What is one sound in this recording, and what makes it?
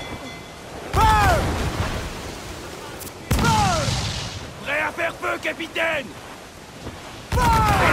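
Cannonballs whistle through the air with falling pitch.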